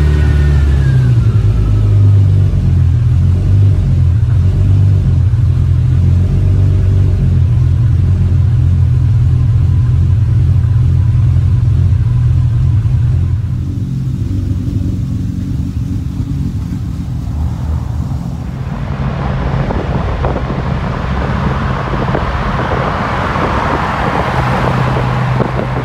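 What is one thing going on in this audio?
A car engine idles with a deep, steady rumbling burble.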